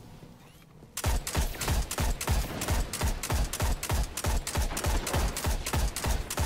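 A rifle fires rapidly in a steady rattle of shots.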